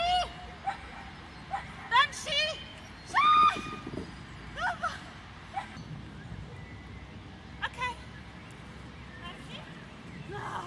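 A woman calls out short commands from a distance outdoors.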